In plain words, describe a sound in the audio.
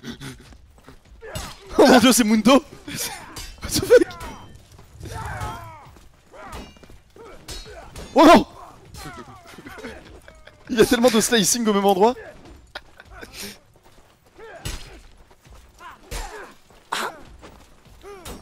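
Blades strike and thud in close combat.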